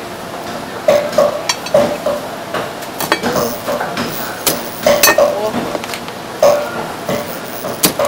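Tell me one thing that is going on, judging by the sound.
A knife chops down through crab shell onto a wooden board.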